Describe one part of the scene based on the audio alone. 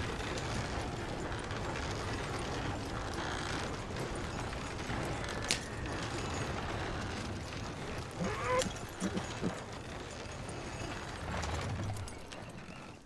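A horse-drawn stagecoach rattles over rocky ground.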